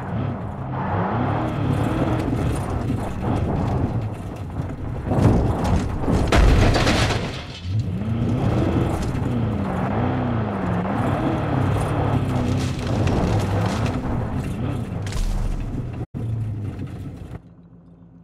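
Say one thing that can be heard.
A car engine revs up and down as it drives over rough ground.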